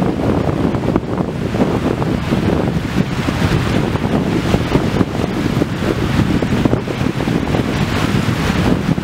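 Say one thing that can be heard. Small sea waves wash onto a shore.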